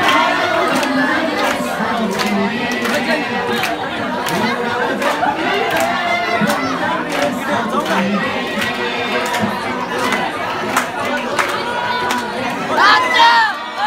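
A young man sings into a microphone, heard through loudspeakers in an echoing hall.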